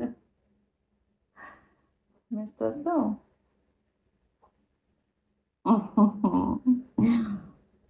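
A young woman laughs softly.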